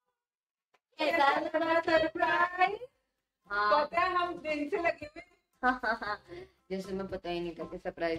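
Several women and a girl sing together cheerfully, close by.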